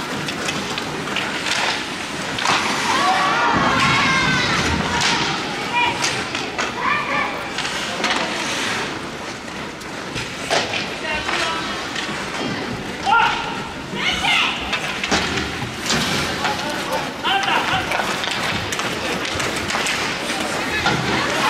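Ice skates scrape and hiss across the ice.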